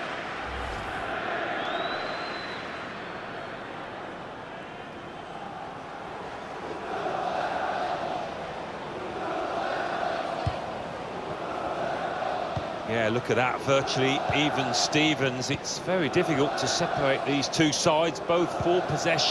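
A stadium crowd murmurs and swells.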